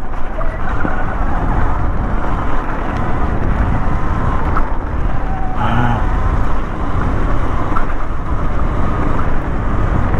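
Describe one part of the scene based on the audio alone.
Bicycle tyres rumble and crunch over a rough, leaf-covered dirt trail.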